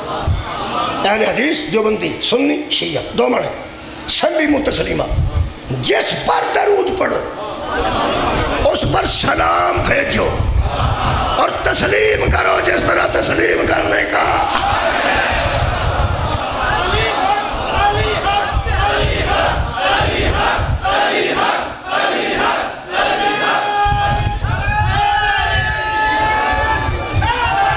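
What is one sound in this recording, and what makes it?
A middle-aged man speaks forcefully into a microphone, his voice ringing through a loudspeaker.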